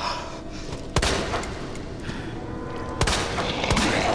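A pistol fires twice.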